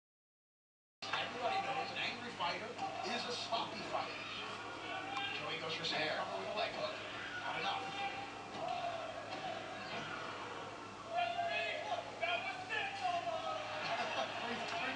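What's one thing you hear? A crowd cheers and shouts, heard through a television speaker.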